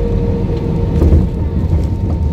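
Landing wheels thud onto the runway.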